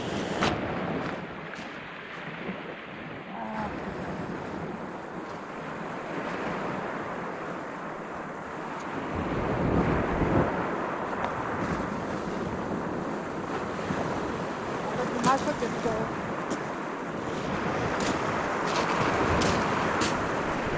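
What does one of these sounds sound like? Pebbles crunch underfoot as someone walks.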